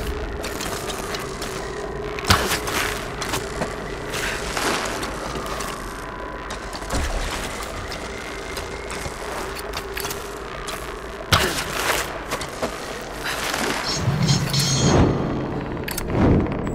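A bowstring twangs as an arrow is shot.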